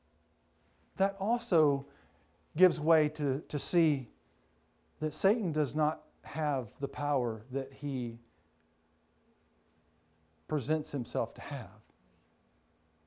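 A man speaks calmly and clearly into a microphone, in pauses.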